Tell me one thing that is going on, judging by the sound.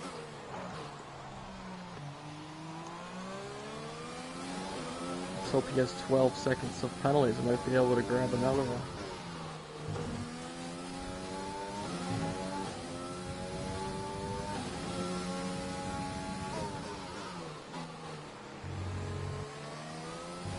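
A racing car engine whines, revving up and dropping with each gear change.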